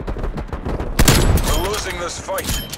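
A sniper rifle fires a single shot.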